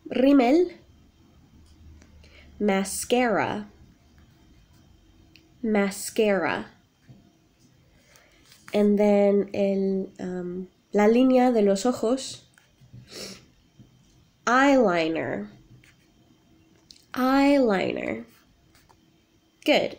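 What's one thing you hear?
A young woman speaks warmly and close up, in short phrases with pauses.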